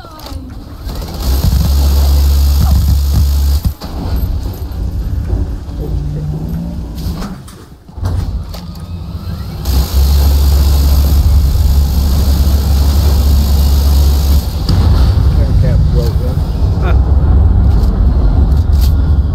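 A spaceship's engines roar with a deep, heavy rumble.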